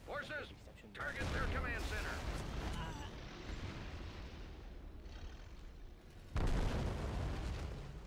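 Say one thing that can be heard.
Artillery shells explode with deep booms.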